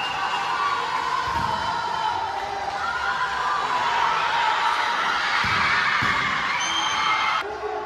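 Players' shoes squeak sharply on a hard court in a large echoing hall.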